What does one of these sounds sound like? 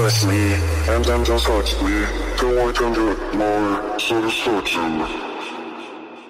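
A man raps loudly.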